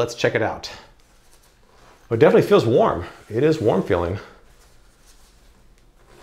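A zipper rasps along a fabric cover.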